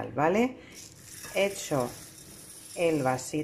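Dry rice grains pour and patter into a bowl.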